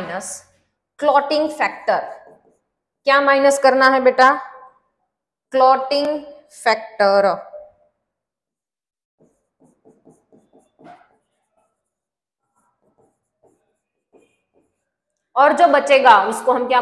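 A woman speaks clearly and calmly, close by.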